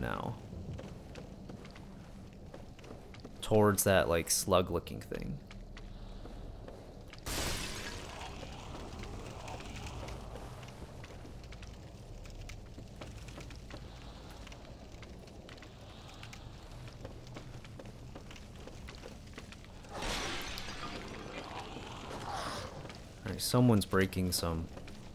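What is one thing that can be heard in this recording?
Footsteps thud on wooden planks.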